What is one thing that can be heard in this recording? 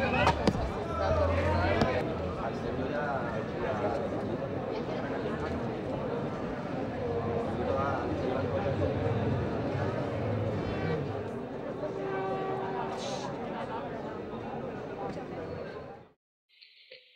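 A crowd murmurs and shouts in a busy street.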